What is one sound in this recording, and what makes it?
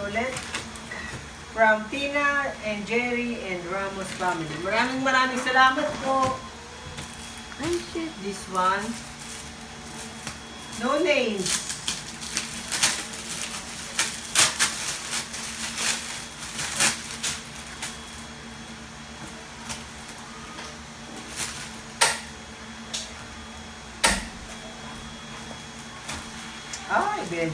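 Wrapping paper crinkles and rips as a gift is unwrapped.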